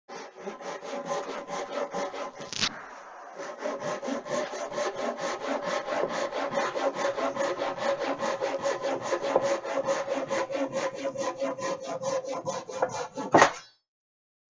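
A hand saw cuts through wood with quick, even strokes.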